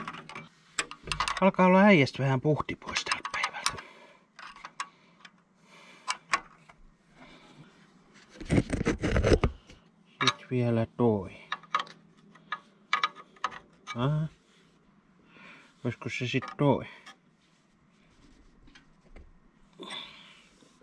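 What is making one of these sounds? A metal wrench clicks and scrapes against a nut.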